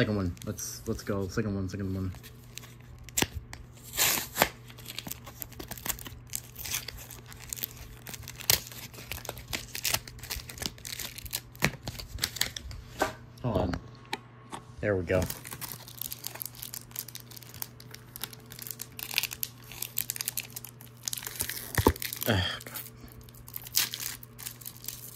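A plastic card wrapper crinkles and rustles as hands handle it.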